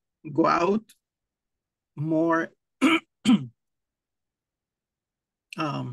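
A man speaks in short phrases over an online call.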